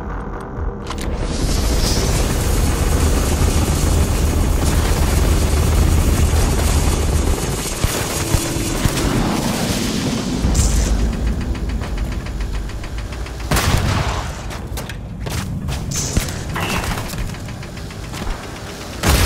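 A gun fires rapid bursts of shots close by.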